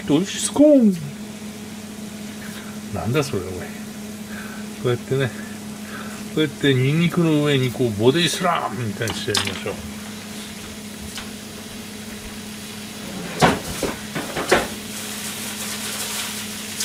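Meat sizzles softly in a hot pan.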